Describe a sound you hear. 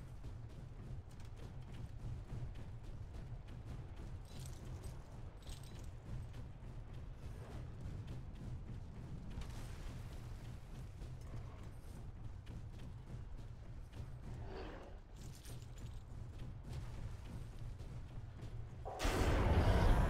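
Heavy footsteps thud steadily on the ground.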